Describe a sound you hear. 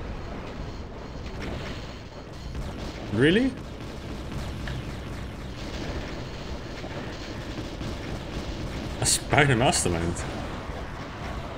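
A plasma gun fires rapid buzzing bursts.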